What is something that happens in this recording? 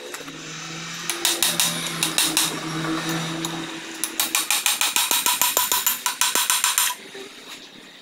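A hammer strikes metal in rapid, ringing blows.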